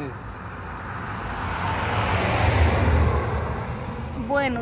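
A car drives past close by on a road.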